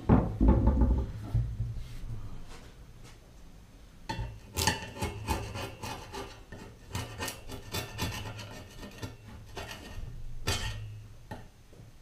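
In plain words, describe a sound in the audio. Metal tools click and scrape against a metal bicycle frame.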